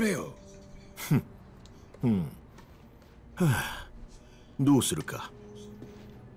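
An older man answers in a low, wary voice, close by.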